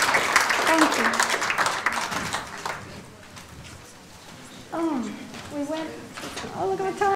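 An older woman speaks through a microphone.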